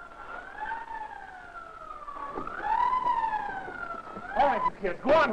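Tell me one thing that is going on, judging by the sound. A siren wails, rising and falling.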